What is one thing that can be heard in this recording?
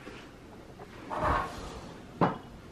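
A drawer slides along its runners.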